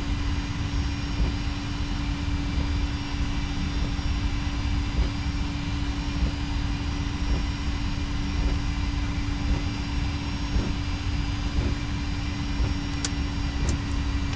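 Jet engines hum steadily.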